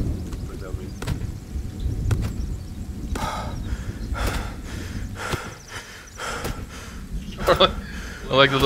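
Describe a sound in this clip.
An axe chops into a tree trunk with repeated dull thuds.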